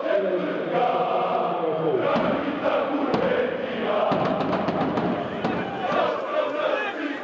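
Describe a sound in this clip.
A large crowd of fans chants and sings loudly in an echoing arena.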